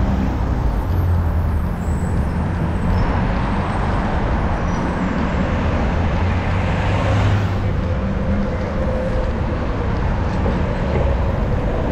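Wind rushes loudly past a moving bicycle outdoors.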